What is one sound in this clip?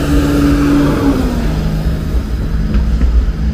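A tram hums as it rolls past.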